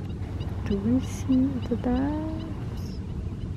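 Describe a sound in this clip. Geese honk a few times nearby.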